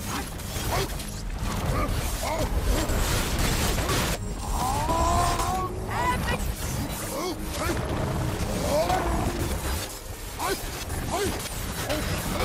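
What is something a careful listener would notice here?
Fiery blades whoosh through the air.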